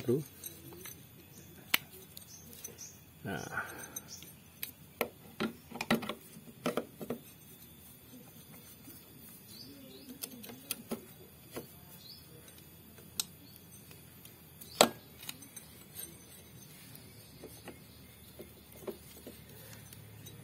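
Metal parts clink and tap together as an engine clutch is fitted by hand.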